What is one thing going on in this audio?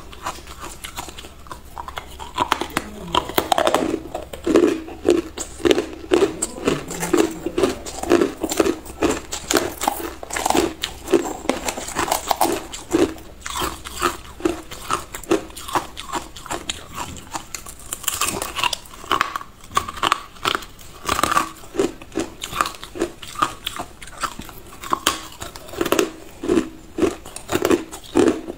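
A woman crunches ice loudly and chews it close to a microphone.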